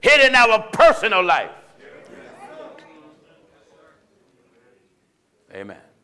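A man preaches loudly and with passion through a microphone in an echoing hall.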